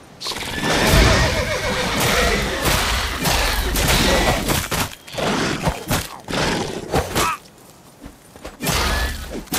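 A monster screeches and snarls.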